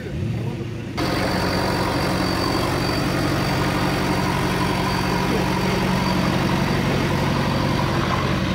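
Big tyres churn and spin through thick mud.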